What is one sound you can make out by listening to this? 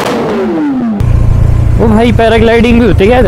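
A motorcycle engine hums and climbs in pitch through the gears while riding.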